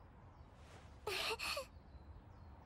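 A young girl answers gently.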